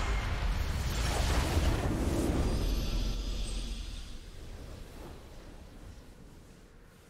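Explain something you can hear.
A game's victory sound booms with a rushing whoosh and slowly fades.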